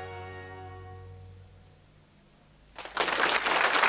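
Music plays and fades out.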